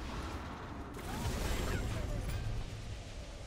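Magic spells burst and whoosh in a game.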